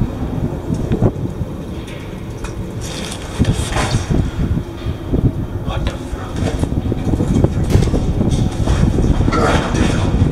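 Knocks and thumps ring out inside a hollow pipe.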